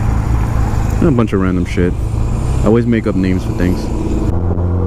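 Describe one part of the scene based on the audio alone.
A motorcycle engine revs sharply, rising in pitch.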